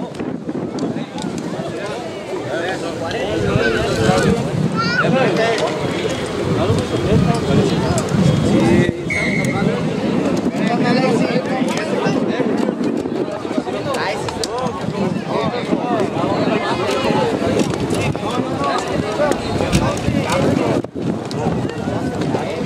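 A crowd of men chatter and shout outdoors.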